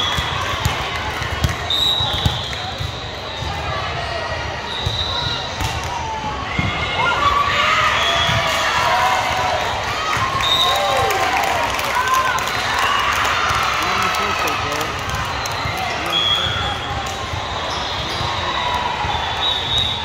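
A volleyball thumps off a player's forearms.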